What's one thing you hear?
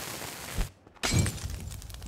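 A burst of flame whooshes and roars.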